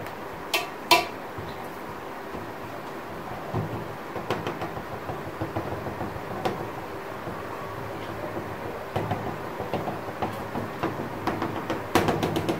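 A knife scrapes along the rim of a metal pan.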